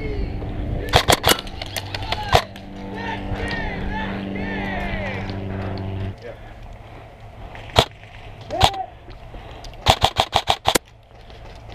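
Airsoft guns fire in short, sharp bursts of pops nearby.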